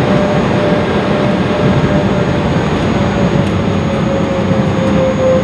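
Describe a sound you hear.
A jet engine roars steadily as an airliner taxis.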